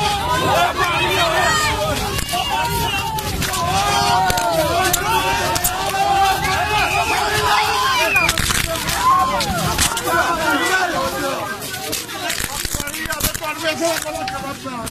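A crowd of men shouts and chants loudly close by.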